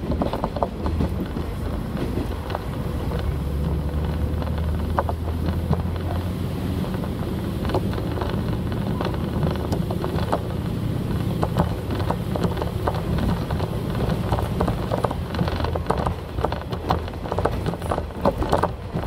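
Train wheels rumble and click over rail joints.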